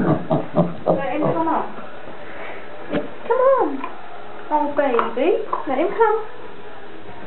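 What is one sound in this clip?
A small pig squeals and grunts.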